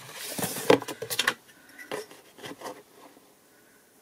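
A ruler clacks down on a hard surface.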